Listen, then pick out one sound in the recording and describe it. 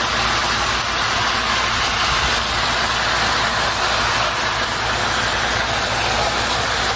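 Hot fat sizzles and crackles steadily.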